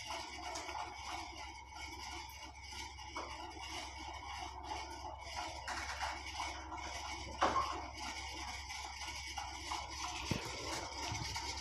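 Cloth rustles and slides as hands handle it.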